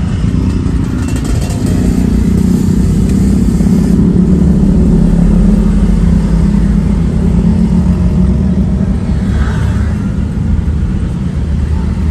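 A motorcycle engine hums steadily up close while riding.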